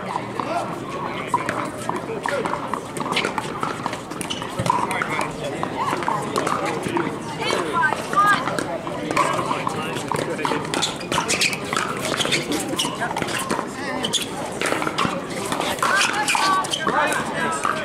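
A crowd of adult men and women chatters on and off nearby, outdoors.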